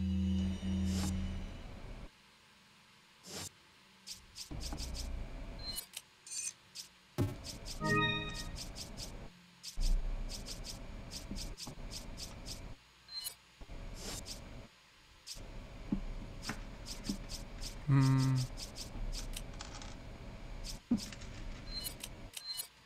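Short electronic menu clicks tick again and again.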